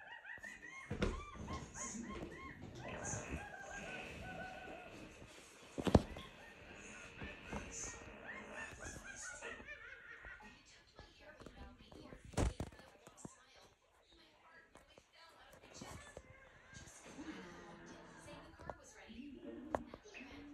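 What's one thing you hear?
Cartoon music and sound effects play from a television loudspeaker.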